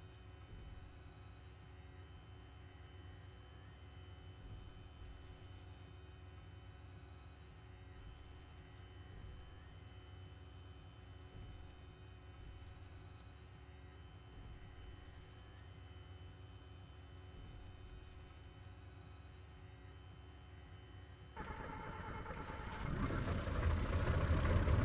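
A small plane's engine hums steadily, then roars louder as it speeds up.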